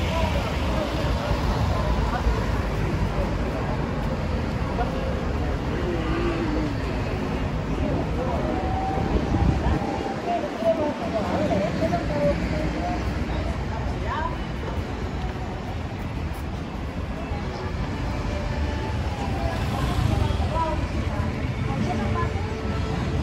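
People chatter in the distance on a busy street.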